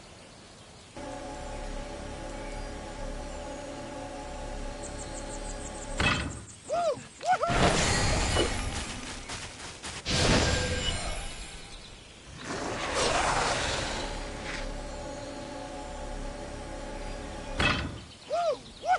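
Calm game music plays with sustained tones.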